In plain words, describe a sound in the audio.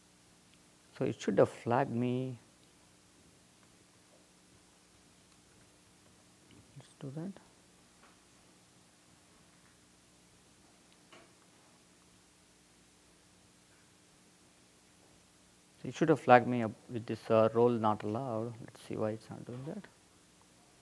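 A man speaks calmly through a microphone in short bursts with long pauses.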